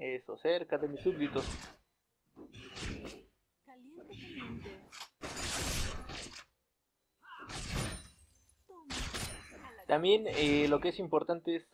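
Fantasy game combat effects whoosh and crackle in short bursts.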